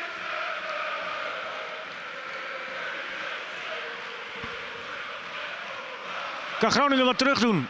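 A large stadium crowd murmurs and roars steadily outdoors.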